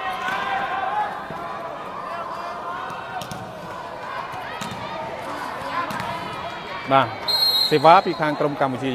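A large crowd murmurs and cheers in an echoing hall.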